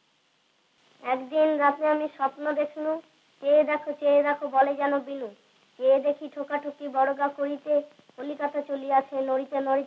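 A group of children recite together in a chorus.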